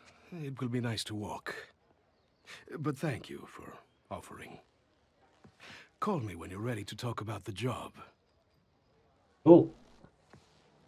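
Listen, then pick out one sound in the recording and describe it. A middle-aged man speaks casually into a microphone.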